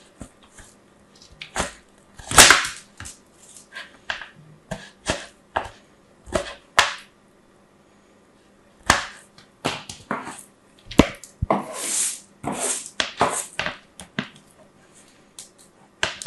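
Soap scrapes and crackles against a metal grater in short bursts.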